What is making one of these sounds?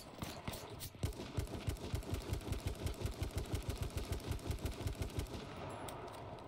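A rifle fires rapid shots close by.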